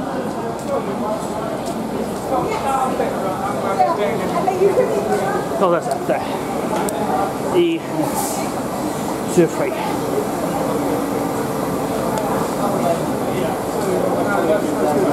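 A crowd of people chatter throughout a large echoing train station.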